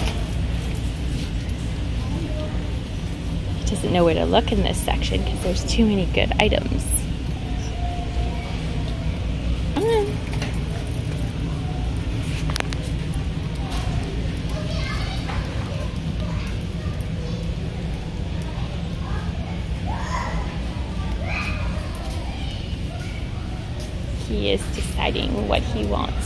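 A dog's claws click on a hard floor.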